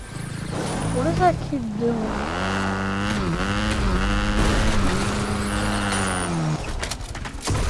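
A motorbike engine revs and whines.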